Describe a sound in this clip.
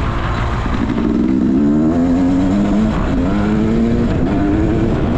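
A dirt bike engine revs and drones up close.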